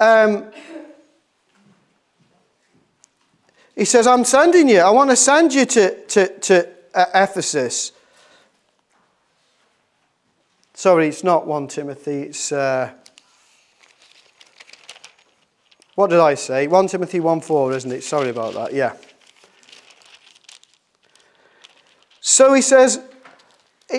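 A middle-aged man reads aloud calmly into a microphone, with pauses between phrases.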